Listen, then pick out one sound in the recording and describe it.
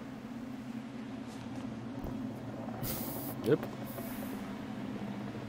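Torch flames crackle and hiss softly.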